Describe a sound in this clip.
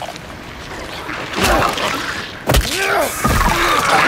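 A wooden plank thuds against a body.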